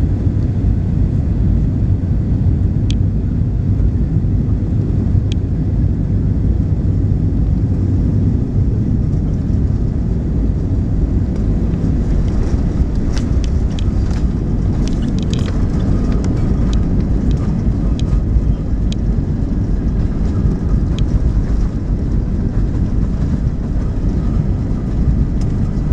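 Jet engines roar steadily from inside an aircraft cabin.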